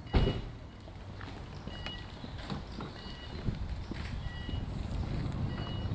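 Footsteps tap on pavement outdoors.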